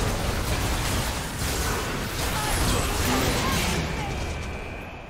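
Magic spells burst and crackle in a loud fight.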